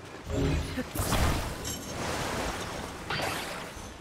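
Water splashes as a heavy object drops into it.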